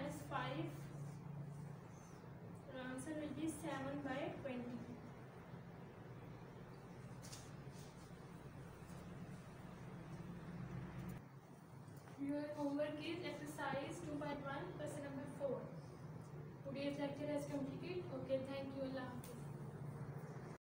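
A woman speaks calmly, explaining in pauses.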